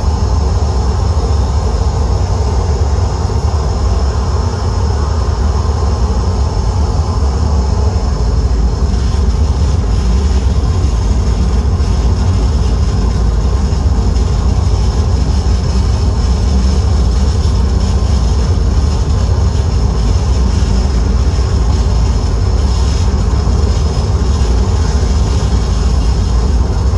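Bright electronic tones and crackles flicker over the drone.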